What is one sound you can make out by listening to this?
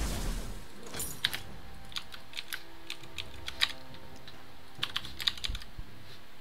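Game clicks and small hit sounds tick quickly.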